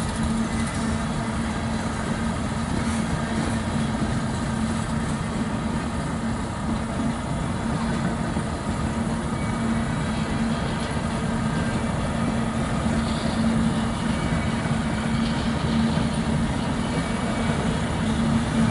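A freight train rumbles and clanks steadily past.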